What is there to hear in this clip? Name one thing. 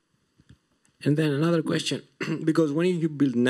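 A man speaks calmly through loudspeakers in a large room, as if on an online call.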